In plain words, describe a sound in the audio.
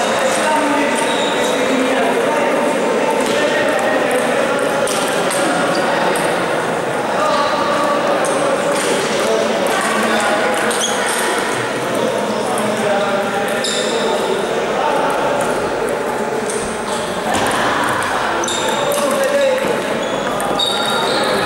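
A crowd of people chatters in the background of a large echoing hall.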